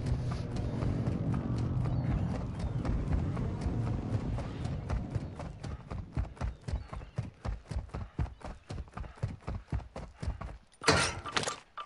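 Footsteps run quickly over dry grass.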